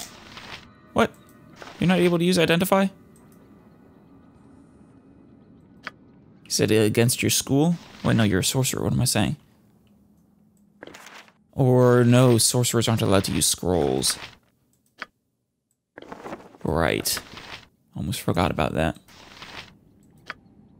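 A game menu gives soft clicks as items are selected.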